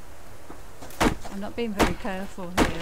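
An axe chops into wood with sharp, heavy thuds.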